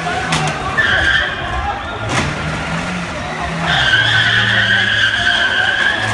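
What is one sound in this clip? A crowd of men shout in the street below.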